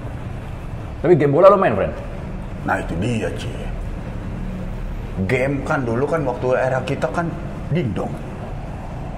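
A man talks casually up close.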